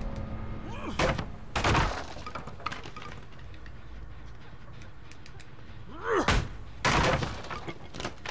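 Wood smashes and splinters loudly.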